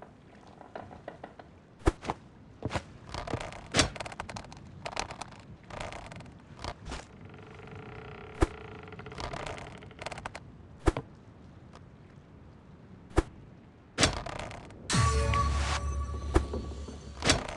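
A hook is thrown out and splashes into water.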